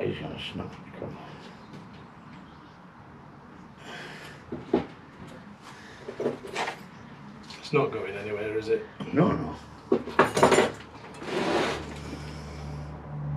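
Soil scrapes and crunches as a man works at a potted tree.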